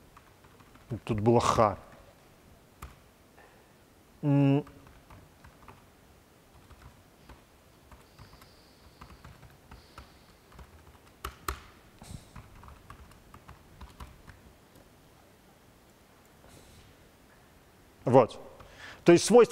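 An elderly man speaks briefly and calmly close to a microphone.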